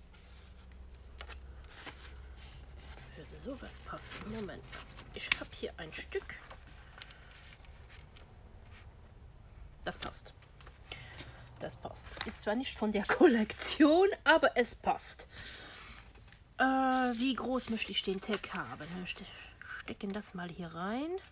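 Paper rustles and slides as it is handled.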